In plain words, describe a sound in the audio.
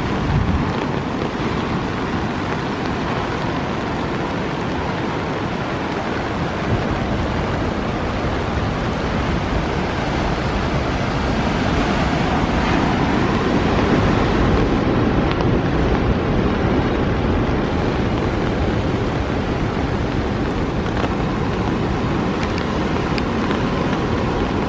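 Wind gusts through trees and rustles leaves.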